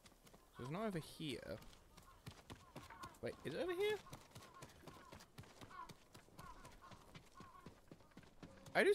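Footsteps patter quickly on a hard path.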